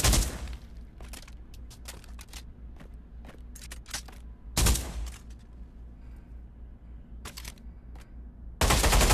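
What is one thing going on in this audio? Metal gun parts click and clatter as a rifle is handled.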